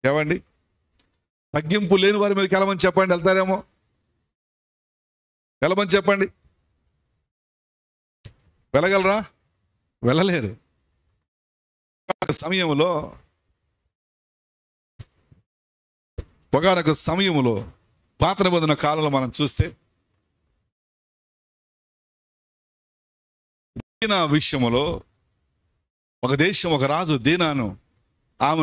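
A man speaks with animation into a microphone, in short phrases broken by pauses.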